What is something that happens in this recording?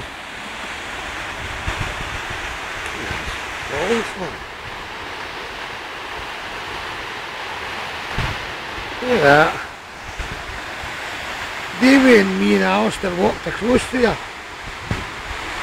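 Water rushes steadily over a weir and roars into a river below.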